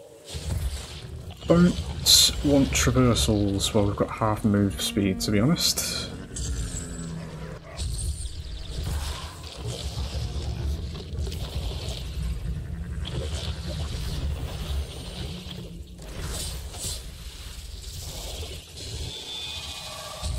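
A large creature's claws thud and scrape over rocky ground.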